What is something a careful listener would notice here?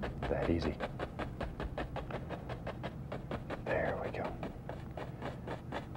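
A stiff brush taps rapidly against canvas.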